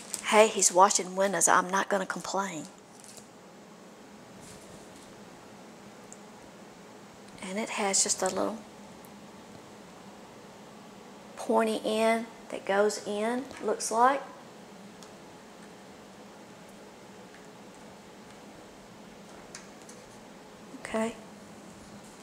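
A woman speaks calmly into a close microphone.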